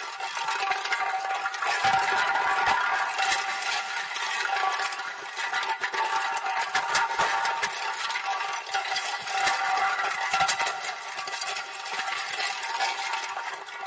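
A metal can rolls and rattles across hard ground.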